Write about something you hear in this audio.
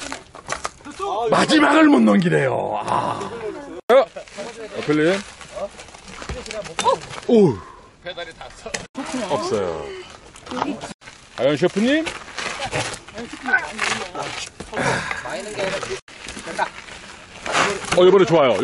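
Men talk and call out with animation nearby, outdoors.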